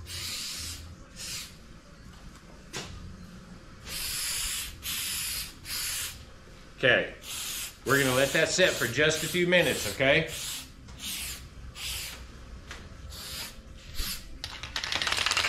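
A spray bottle hisses in short repeated bursts.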